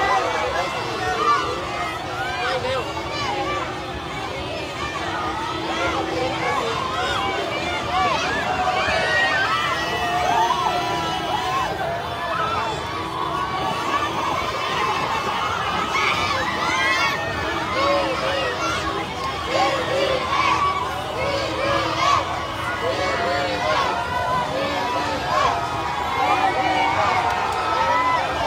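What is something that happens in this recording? Many people whistle shrilly in a crowd.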